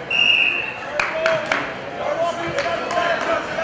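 Spectators clap.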